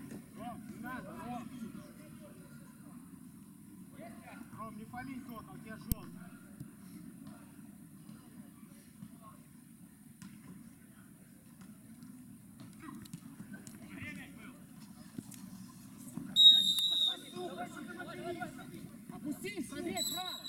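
Male players shout and call out to one another outdoors.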